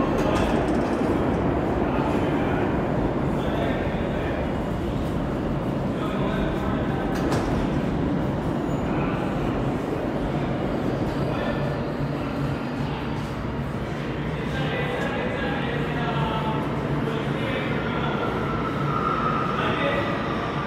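A low, steady rumble fills a large echoing underground hall.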